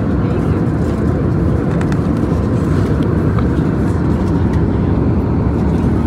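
Paper pages rustle as they are turned.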